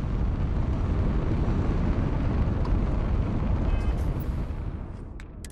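A spaceship's engines rumble loudly.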